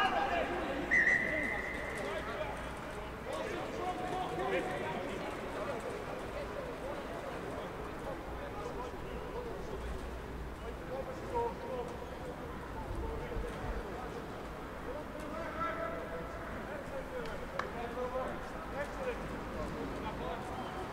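Men shout to each other outdoors.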